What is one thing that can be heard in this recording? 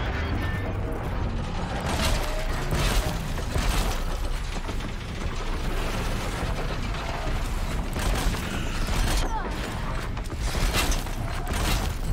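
Machines screech and roar.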